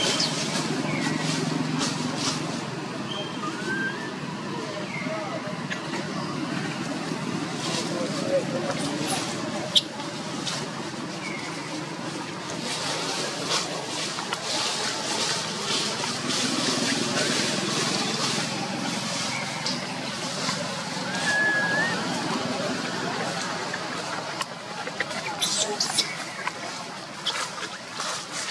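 Dry leaves rustle and crackle as monkeys move about on the ground.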